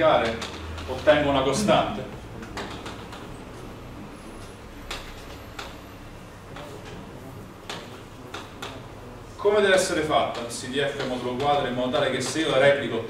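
A man speaks calmly, lecturing in a room with some echo.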